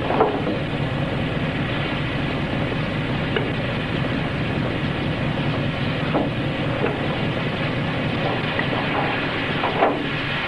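Metal parts clink under a car's hood.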